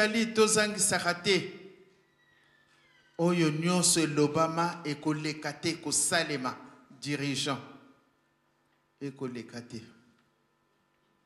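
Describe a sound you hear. A middle-aged woman speaks emotionally into a microphone in an echoing hall.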